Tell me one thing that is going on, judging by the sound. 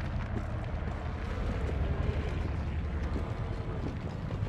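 Footsteps patter quickly across roof tiles.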